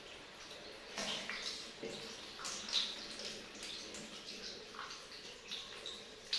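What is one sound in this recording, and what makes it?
Water splashes as a small child's hands play in it.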